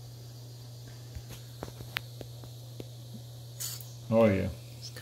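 Small metal parts click and tap in hands.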